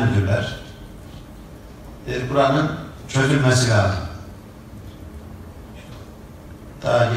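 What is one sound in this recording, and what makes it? An elderly man speaks loudly and passionately in short bursts.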